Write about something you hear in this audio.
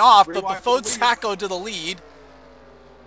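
Race car engines roar and whine past at high speed.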